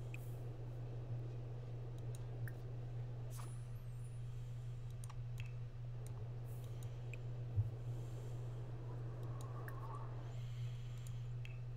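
Soft interface clicks and chimes sound as menus open and close.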